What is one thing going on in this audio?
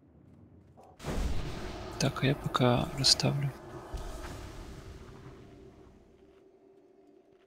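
Magical spell effects whoosh and shimmer.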